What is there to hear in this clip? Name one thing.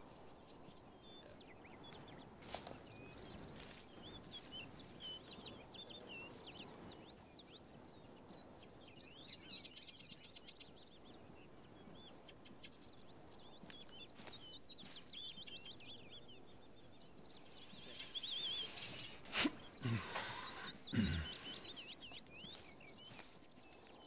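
Footsteps rustle through grass and dry leaves.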